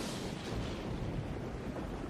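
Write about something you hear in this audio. Thunder rumbles low and heavy.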